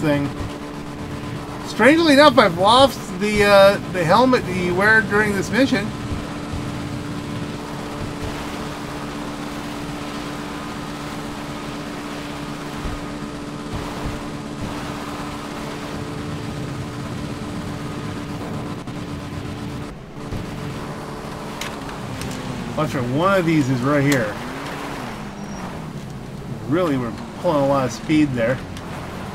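A small motorbike engine hums steadily, rising and falling in pitch.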